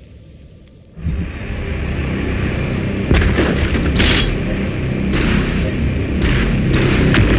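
A rushing stream of energy roars loudly.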